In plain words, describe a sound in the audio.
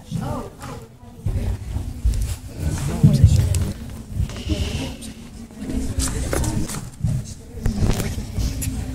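Teenage girls chatter and murmur close by.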